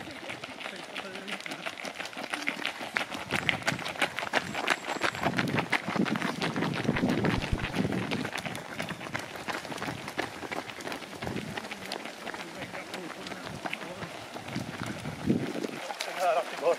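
Many running footsteps patter on a paved path.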